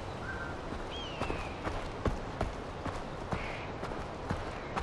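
A bird of prey cries overhead.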